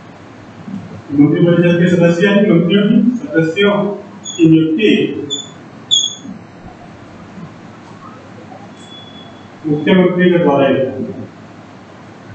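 A man speaks calmly nearby, in short bursts with pauses.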